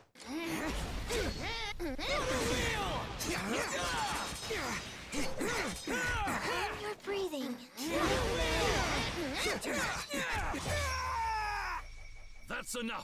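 Swords clash and whoosh in a fast fight.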